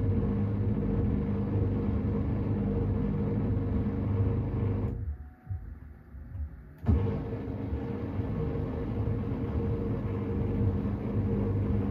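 Water and laundry slosh inside a washing machine drum.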